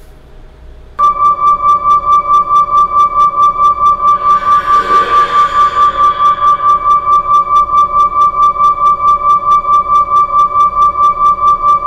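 A recording plays back as a rapidly pulsing steady beep.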